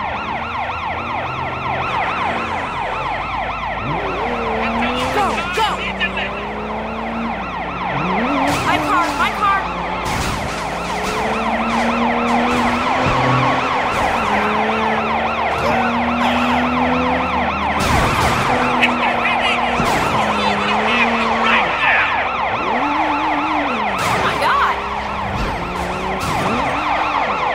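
A car engine roars and revs hard.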